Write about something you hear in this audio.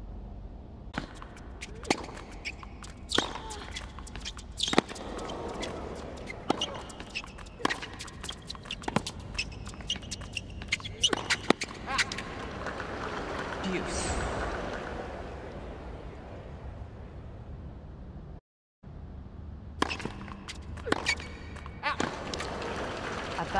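Tennis rackets strike a ball back and forth in a rally on a hard court.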